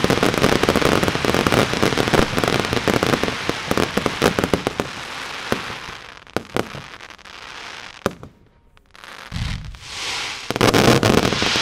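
Fireworks crackle and pop rapidly in a dense barrage.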